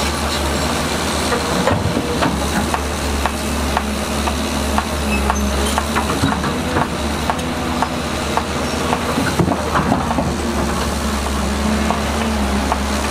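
A bulldozer engine rumbles steadily.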